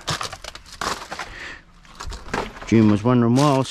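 Plastic wrappers and bags crinkle and rustle close by.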